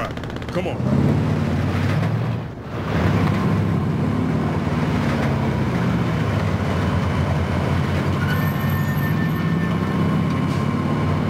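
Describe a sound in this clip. A truck engine rumbles steadily as the truck drives along.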